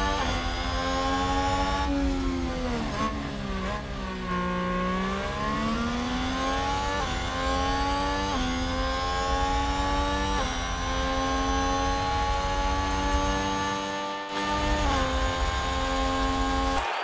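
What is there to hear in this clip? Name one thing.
A racing car engine screams at high revs, rising in pitch through each gear and dropping sharply at every shift.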